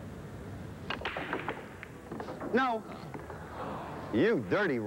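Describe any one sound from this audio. Billiard balls clack against each other and roll across the table.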